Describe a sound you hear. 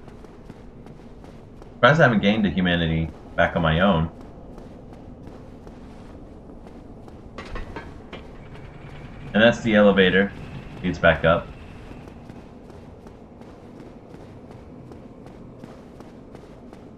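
Footsteps run over a stone floor.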